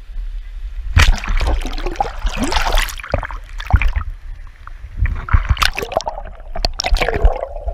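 Water splashes and sloshes close by.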